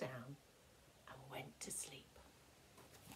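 A woman reads aloud calmly, close by.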